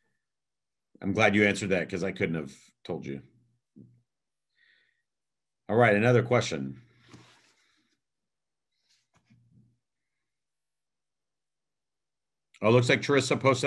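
A second middle-aged man speaks calmly over an online call.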